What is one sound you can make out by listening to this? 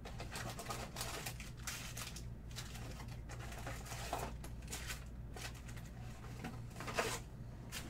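Plastic wrap crinkles as it is peeled off.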